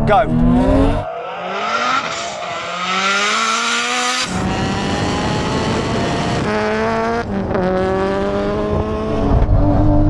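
Sports car engines roar as the cars accelerate away outdoors.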